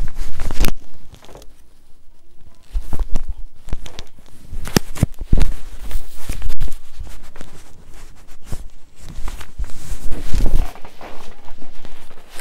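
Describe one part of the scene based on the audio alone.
Things rustle and knock as they are handled close by.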